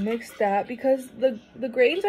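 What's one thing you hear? Liquid pours from a pitcher into a cup.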